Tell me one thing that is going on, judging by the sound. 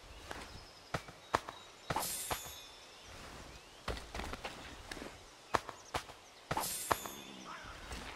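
Cloth rustles as a body on the ground is searched.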